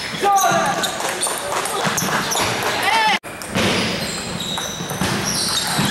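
Ping-pong balls click against paddles and tables in a large echoing hall.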